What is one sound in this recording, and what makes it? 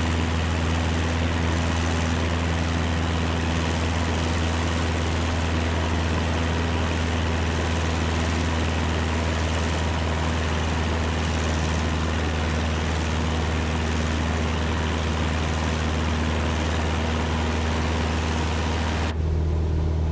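A small propeller plane's engine drones steadily outside.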